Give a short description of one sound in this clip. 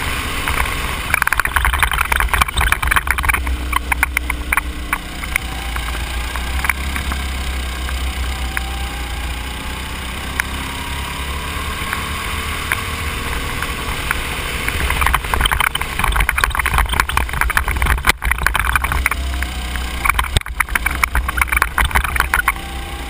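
A go-kart engine drones loudly up close.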